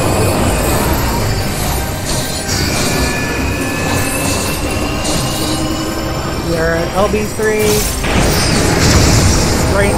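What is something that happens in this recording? Video game spell effects whoosh and chime.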